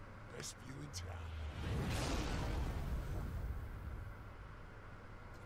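A magical energy burst swells with a rushing whoosh and fades.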